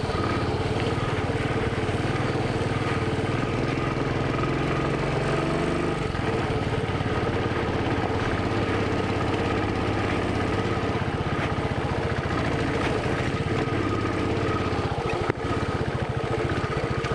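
A motorcycle engine thumps steadily up close.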